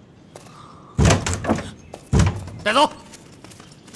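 A man speaks sharply, giving an order.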